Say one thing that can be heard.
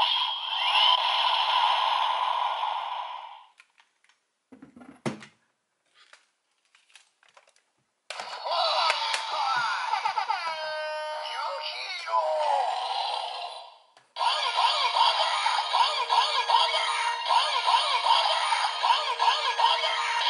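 A toy weapon plays electronic music and sound effects through a small, tinny speaker.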